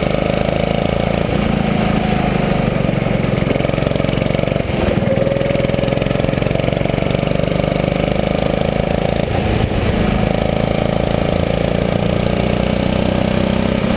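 A go-kart engine buzzes loudly up close, rising and falling in pitch as it speeds up and slows for bends.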